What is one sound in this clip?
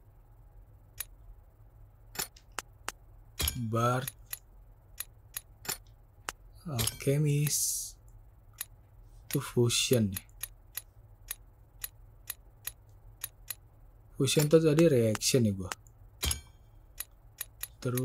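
A mouse clicks sharply, again and again.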